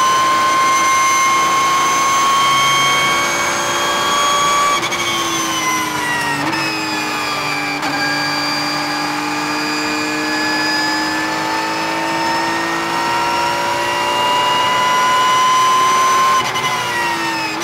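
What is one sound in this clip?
A racing car engine roars loudly up close, dropping in pitch as the car slows and rising again as it speeds up.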